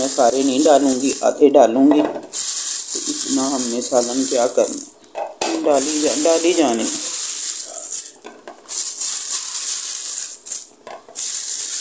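A plastic bag crinkles and rustles close by.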